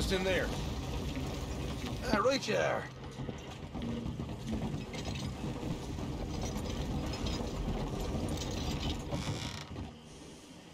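A wooden wagon rolls and rumbles over the ground.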